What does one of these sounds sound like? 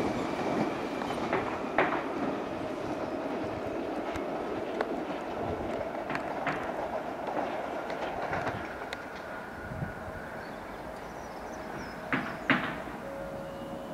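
A tube train's electric motors whine as the train pulls away.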